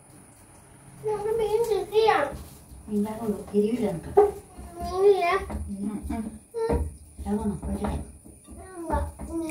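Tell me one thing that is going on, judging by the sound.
An elderly woman talks with animation nearby.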